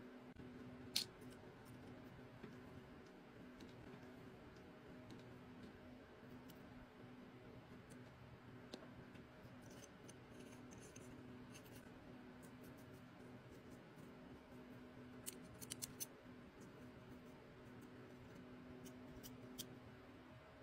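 Small metal parts of an airbrush click and tap as they are handled.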